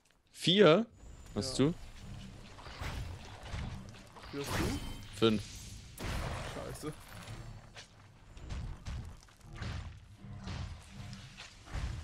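Magic spells blast and crackle amid clashing blows in a fight.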